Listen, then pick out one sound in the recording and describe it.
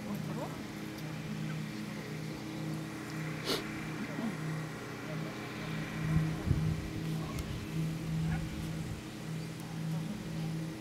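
A woman talks quietly at a distance.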